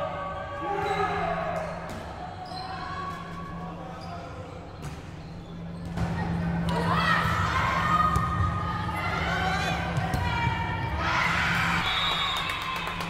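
Young women shout and call out across a large echoing hall.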